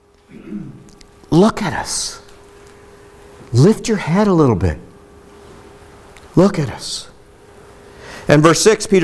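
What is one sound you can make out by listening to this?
A middle-aged man speaks with animation through a microphone in an echoing room.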